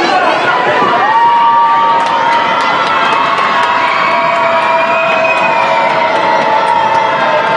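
A group of young women cheer and chant loudly.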